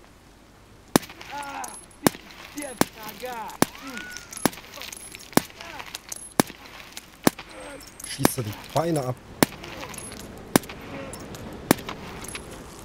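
A rifle fires single loud shots at a steady pace, each echoing off buildings.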